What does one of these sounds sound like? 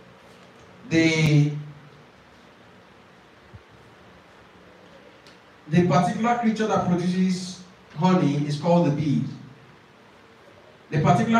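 A young man speaks clearly into a microphone in short bursts, with pauses between.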